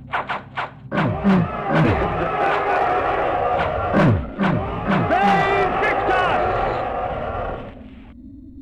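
A woman screams in pain.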